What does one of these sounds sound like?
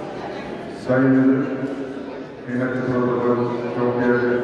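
An older man speaks into a microphone over loudspeakers in a large echoing hall.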